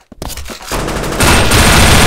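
An assault rifle fires.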